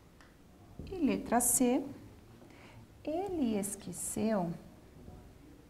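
A woman speaks calmly and clearly nearby.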